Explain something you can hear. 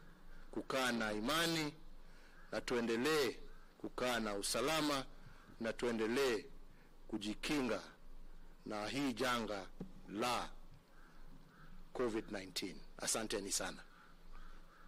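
A middle-aged man speaks firmly and with emphasis into a microphone.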